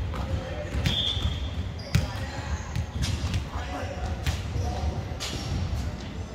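Shoes squeak on a wooden court.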